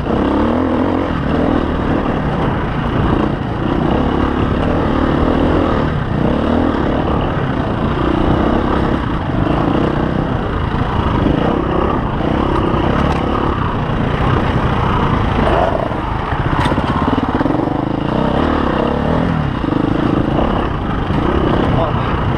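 Tyres crunch over rock and dirt.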